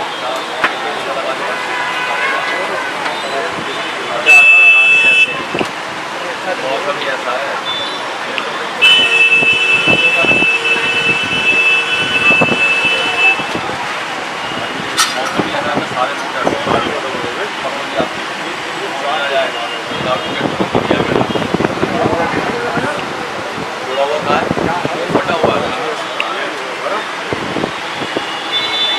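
A busy crowd chatters in the background.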